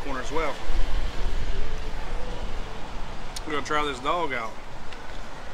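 A man speaks casually up close.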